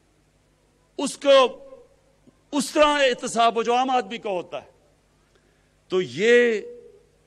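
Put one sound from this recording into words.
A middle-aged man gives a speech forcefully through a microphone and loudspeakers, outdoors.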